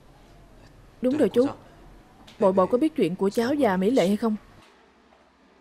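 A young man asks a question calmly nearby.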